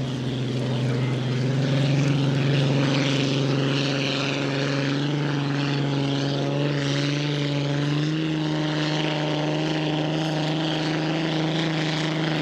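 A powerboat engine drones loudly and steadily.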